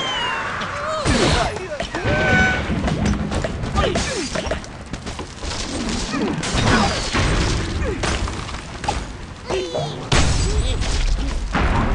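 Debris clatters and breaks apart.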